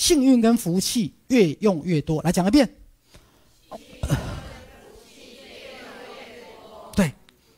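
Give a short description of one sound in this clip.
A man speaks with animation into a microphone in a room with some echo.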